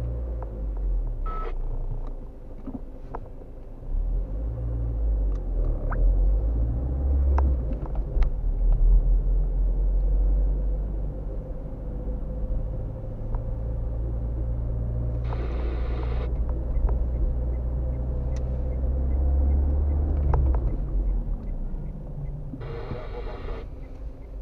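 A car engine hums steadily from inside the car as it drives along a street.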